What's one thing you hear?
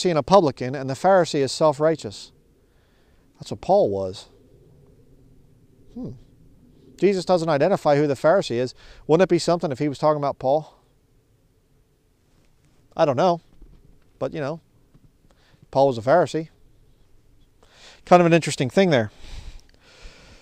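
A man speaks calmly and clearly close by, outdoors, with pauses.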